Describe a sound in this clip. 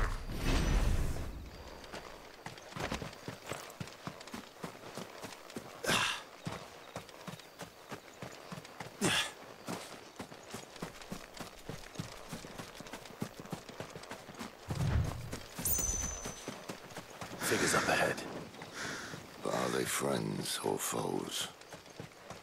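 Footsteps tread on grass and earth.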